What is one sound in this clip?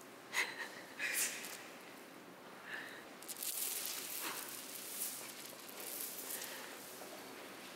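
Strings of metal beads clink and rattle against each other close by.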